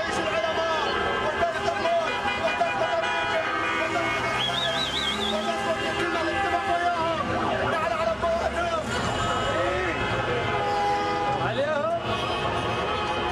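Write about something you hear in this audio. A crowd of men shouts and chants outdoors.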